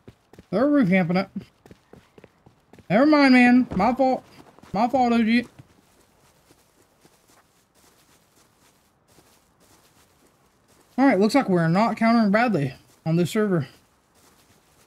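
Footsteps tread softly on grass and gravel.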